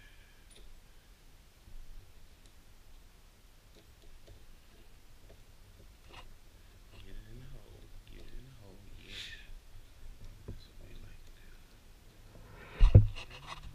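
Small plastic parts click and tap as hands fit them together.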